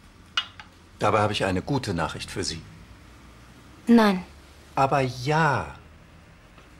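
A middle-aged man speaks in a calm, firm voice close by.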